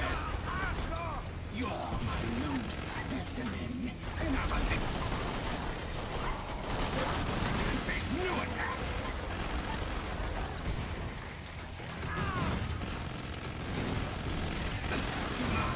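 Creatures screech and growl.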